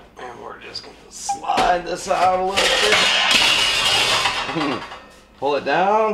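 A metal panel rattles and clanks as it is lifted off.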